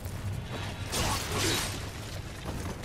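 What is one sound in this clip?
A heavy burst of noise rushes.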